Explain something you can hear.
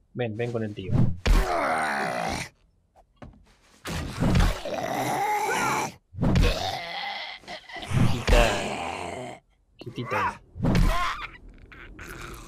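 A heavy hammer thuds repeatedly against a body.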